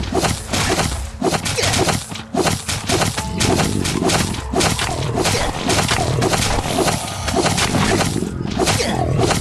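Heavy weapon blows thud into bodies in quick succession.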